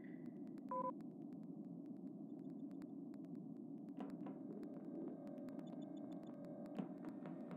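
Small footsteps patter quickly and evenly.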